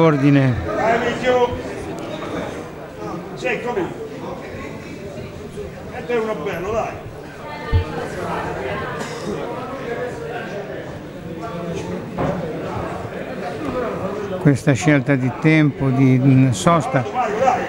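Men in a crowd shout and call out loudly in an echoing hall.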